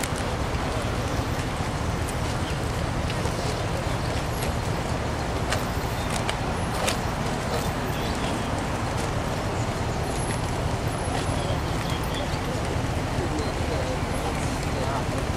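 Many footsteps shuffle on pavement outdoors.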